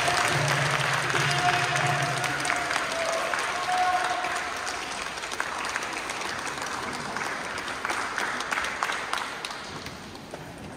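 An audience applauds in a large echoing hall, then the clapping fades.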